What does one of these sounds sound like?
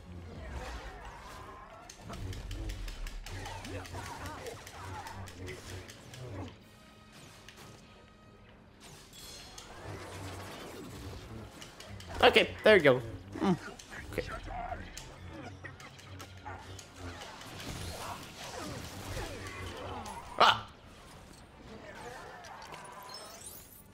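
Lightsabers hum and clash in a fight.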